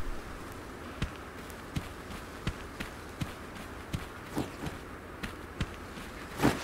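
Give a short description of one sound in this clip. Footsteps crunch through grass at a steady walking pace.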